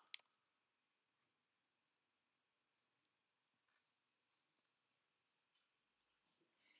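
Hands rustle softly through hair.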